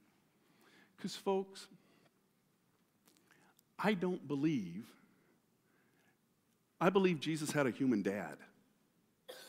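A middle-aged man speaks with animation through a microphone, with pauses between phrases.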